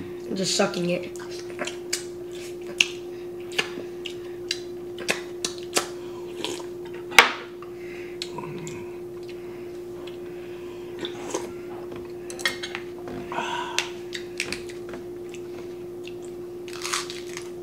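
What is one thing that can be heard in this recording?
A man slurps and chews food close up.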